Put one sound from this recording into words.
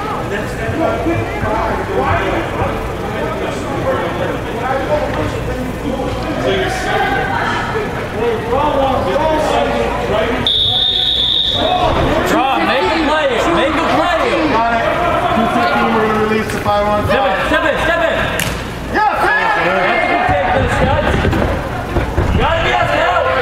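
Spectators and young players shout and call out in a large echoing hall.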